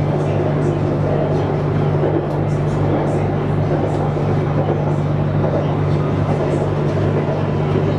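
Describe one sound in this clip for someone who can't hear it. A train rumbles and hums steadily as it rolls along the track.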